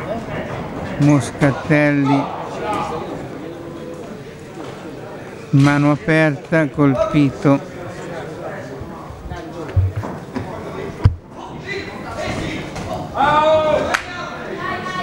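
A man in the crowd shouts loudly.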